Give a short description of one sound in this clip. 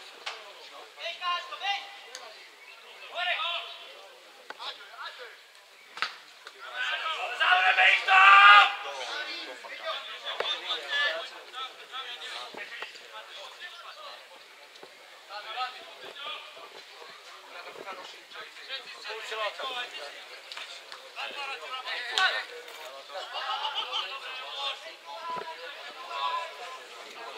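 Men close by talk and call out loudly, outdoors.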